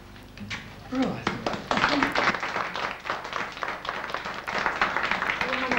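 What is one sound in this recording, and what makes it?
Women cheer and laugh.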